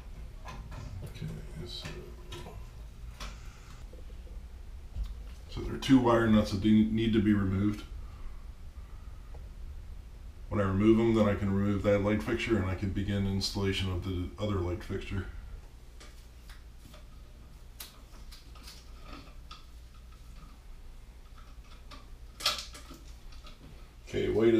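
Small metal parts click and rattle in hands.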